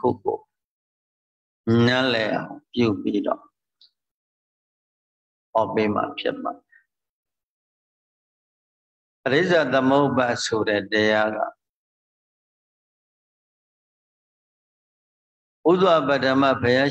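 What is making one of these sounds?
A man speaks calmly in short phrases, heard through an online call.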